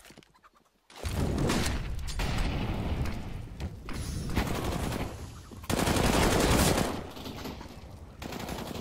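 Rifle shots crack in quick bursts.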